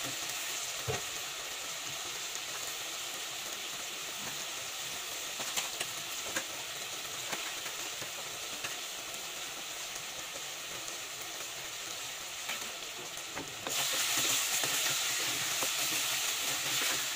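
Meat sizzles and bubbles in a pot.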